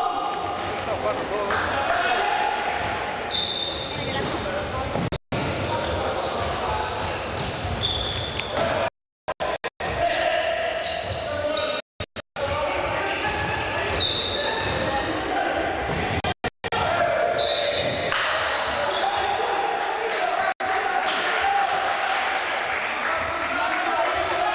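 Men shout and call out to each other across an echoing hall.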